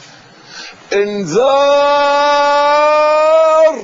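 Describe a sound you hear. An elderly man cries out in a long, drawn-out, sung voice.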